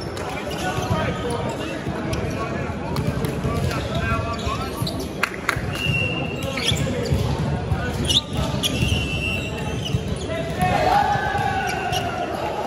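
Men call out to each other across a large echoing hall.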